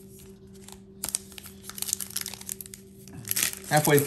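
Cards rustle and click softly as hands handle them.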